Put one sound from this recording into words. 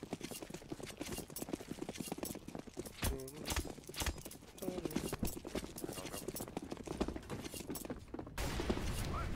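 Footsteps clatter quickly on hard ground.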